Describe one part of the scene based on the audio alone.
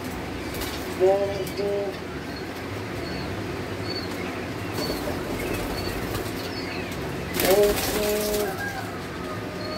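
A hen squawks close by.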